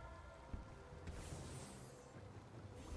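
A bright magic blast crackles.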